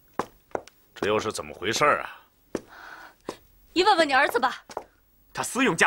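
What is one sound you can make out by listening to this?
A woman speaks sharply and with agitation, close by.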